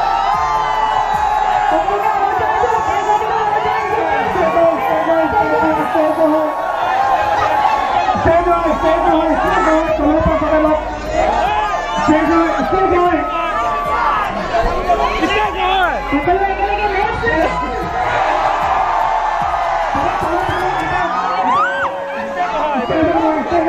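A large crowd of young men cheers and shouts excitedly close by.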